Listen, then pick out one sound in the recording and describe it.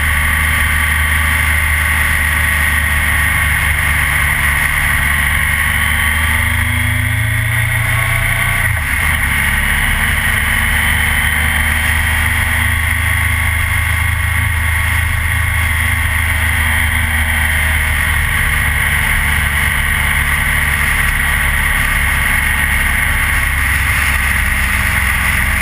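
A motorcycle engine hums steadily up close, rising and falling in pitch.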